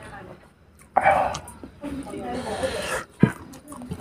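Gravy pours and splashes onto rice.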